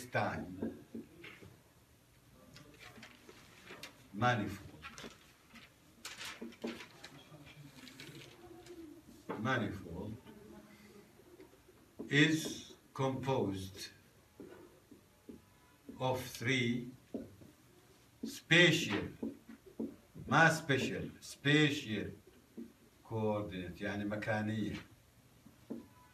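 A middle-aged man speaks in short bursts, like lecturing.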